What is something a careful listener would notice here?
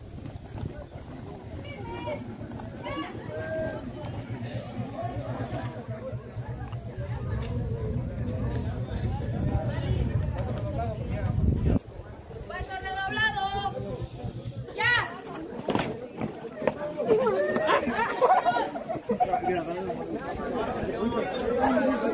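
A crowd of teenagers chatters and calls out nearby.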